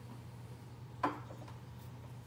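A glass clinks down onto a wooden surface.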